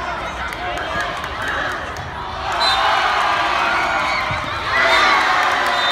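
A crowd of young women shouts and cheers outdoors.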